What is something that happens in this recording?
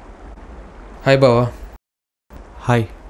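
A man speaks loudly and briefly, close by.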